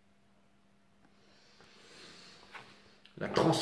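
Cards shuffle softly in a man's hands.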